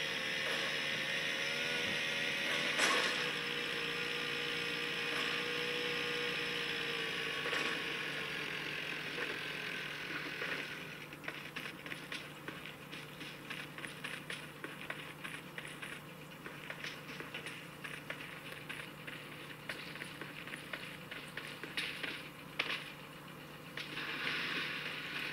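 Game sounds play steadily from a phone's small speaker.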